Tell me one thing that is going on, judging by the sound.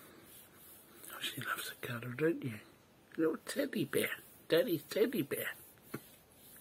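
A man chuckles softly close by.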